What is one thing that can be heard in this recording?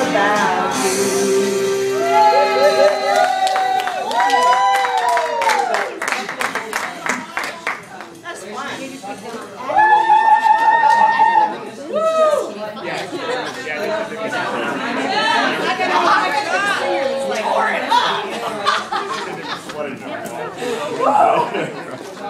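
A band plays rock music with electric guitars through loudspeakers.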